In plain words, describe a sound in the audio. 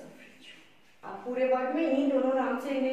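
A woman speaks clearly and calmly close by.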